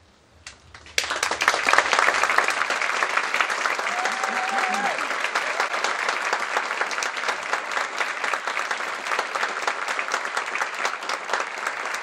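An audience applauds loudly in a large hall.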